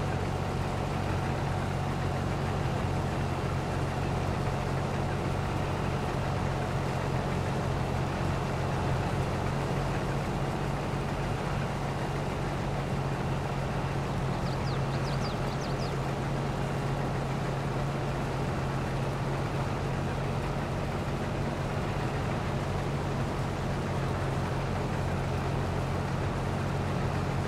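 Grain pours from an unloading auger into a trailer with a steady rush.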